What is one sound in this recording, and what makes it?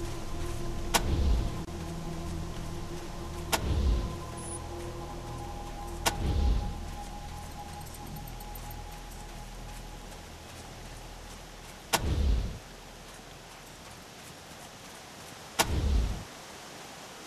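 Heavy gunshots boom one at a time, each followed by a deep rumble.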